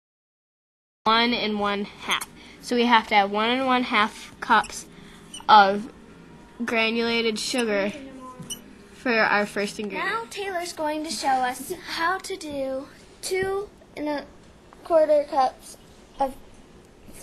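A young girl talks with animation close to the microphone.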